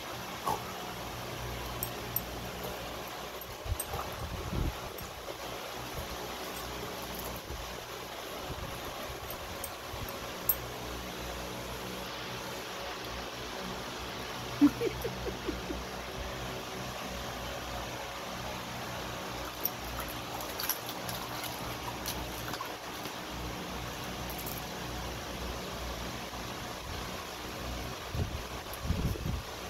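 Water splashes and sloshes as a dog plays in a shallow tub.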